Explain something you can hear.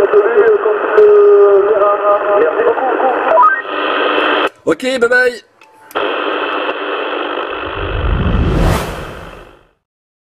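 A radio receiver crackles and hisses with static through a small loudspeaker.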